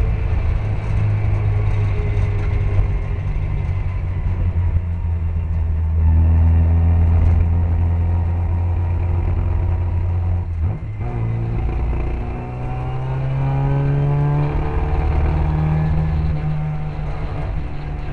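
Other racing car engines roar nearby.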